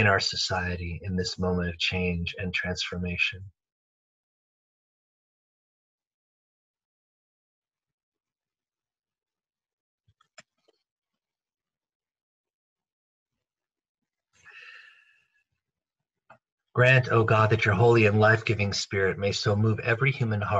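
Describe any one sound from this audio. A man reads aloud calmly over an online call.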